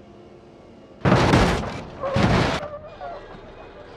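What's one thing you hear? A motorcycle crashes with loud crunching impacts.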